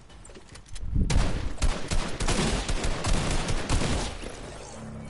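Rapid gunfire and blasts crackle loudly.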